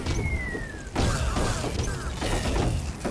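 Blocks shatter with a crunching burst.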